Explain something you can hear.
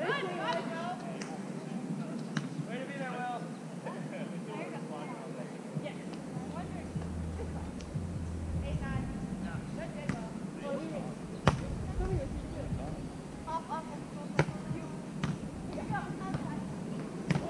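Young women call out to each other across an open outdoor court.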